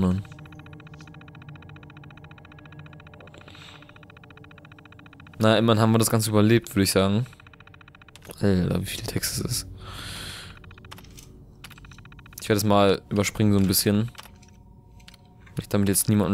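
A computer terminal hums steadily.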